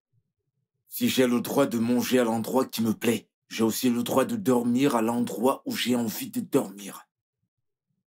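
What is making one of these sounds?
A man speaks with animation at close range.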